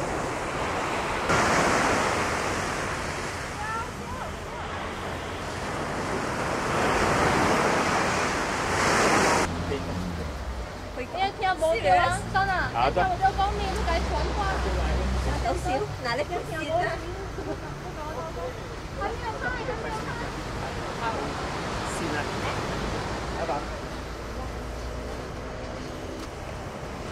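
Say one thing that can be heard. Waves wash onto a sandy shore.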